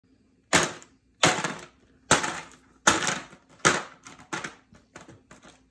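A toddler bangs a small hammer on ice in a plastic tub.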